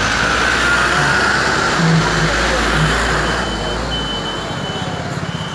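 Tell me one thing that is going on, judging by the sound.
A bus engine rumbles close by.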